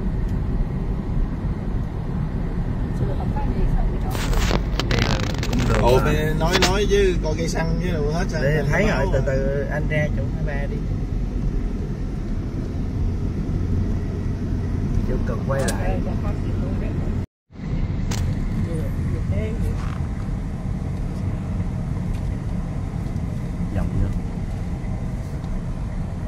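A car engine hums and tyres rumble steadily on the road, heard from inside the car.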